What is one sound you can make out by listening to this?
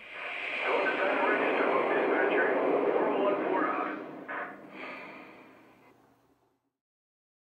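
A model steam locomotive hisses and chuffs.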